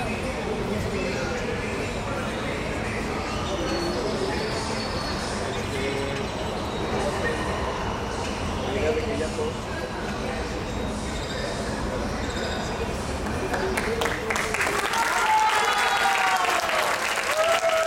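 Music plays from a loudspeaker outdoors.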